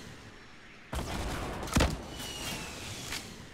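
A blast booms and rumbles.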